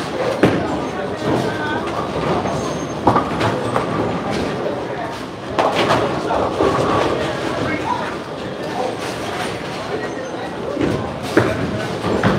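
A bowling ball rumbles down a lane.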